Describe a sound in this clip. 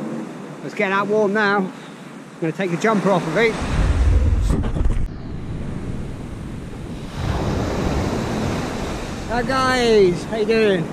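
Small waves break on a sandy beach.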